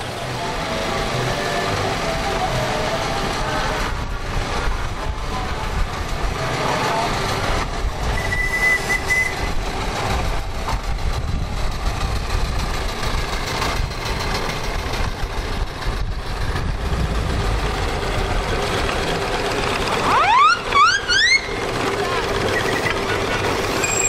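Small steam engines chug and rumble along a road outdoors.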